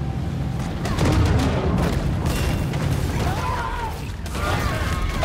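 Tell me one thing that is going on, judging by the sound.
Water splashes and crashes as a boat is rammed.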